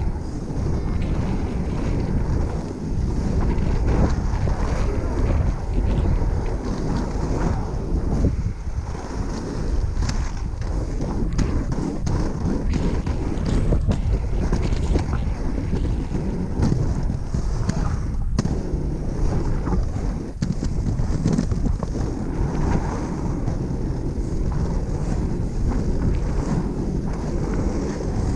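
Inline skate wheels roll and rumble steadily on asphalt close by.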